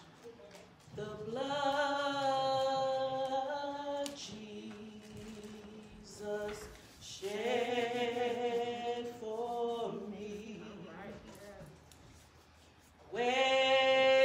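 A man sings through a microphone with long, held notes, echoing in a large hall.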